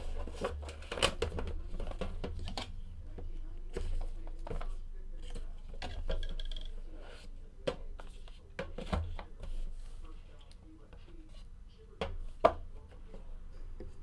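Cardboard packaging rustles and scrapes as hands slide it open.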